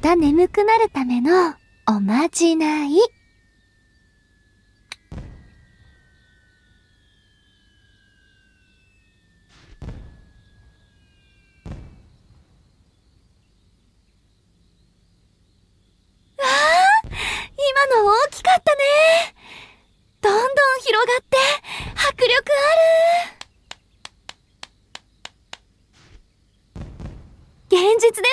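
A young woman speaks sweetly and animatedly, close by.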